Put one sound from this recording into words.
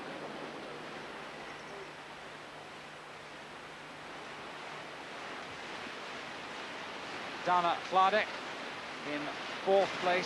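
A paddle splashes in the water with quick strokes.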